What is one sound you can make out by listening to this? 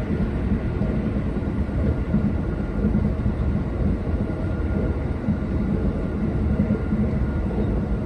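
An electric express train rumbles along the rails at speed, heard from inside the carriage.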